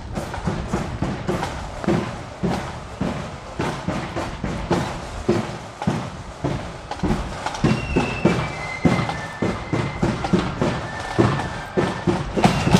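Many footsteps march steadily on a paved road outdoors.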